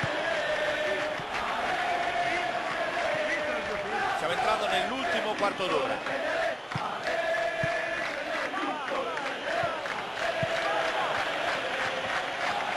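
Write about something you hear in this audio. A stadium crowd chants and cheers steadily.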